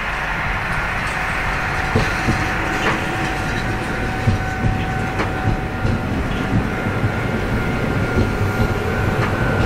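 A diesel train rumbles steadily along the tracks.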